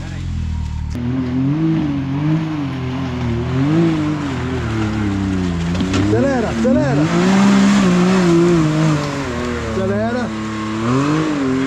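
An off-road buggy's engine revs up and down over and over.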